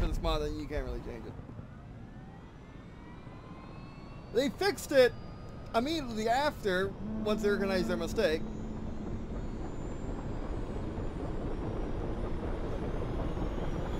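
A helicopter engine whines and hums, slowly rising in pitch.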